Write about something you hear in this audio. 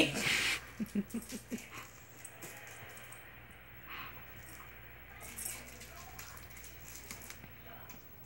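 A dog chews on a squeaky toy, making it squeak.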